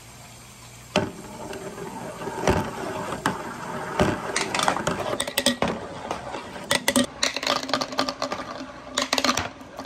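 Many glass marbles roll and clatter down a long plastic chute.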